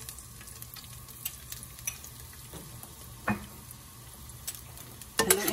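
Chopped garlic sizzles and crackles softly in a hot pan.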